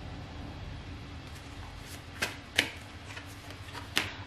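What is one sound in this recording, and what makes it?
Playing cards rustle and tap softly as they are handled.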